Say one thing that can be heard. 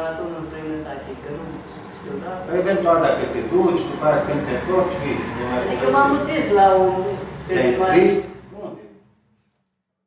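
A man talks cheerfully nearby.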